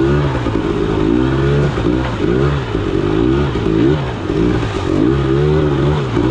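Water splashes under the tyres.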